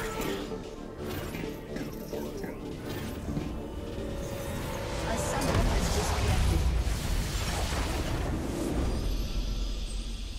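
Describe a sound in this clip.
Game fight effects crackle and blast.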